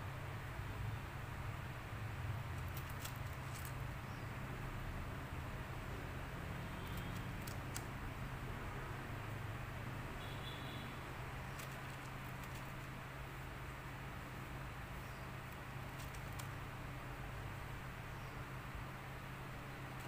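Small pebbles click softly as a hand sets them onto a cloth surface.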